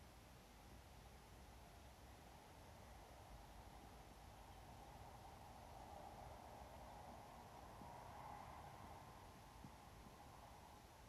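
A young woman speaks steadily into a microphone, heard through a loudspeaker outdoors.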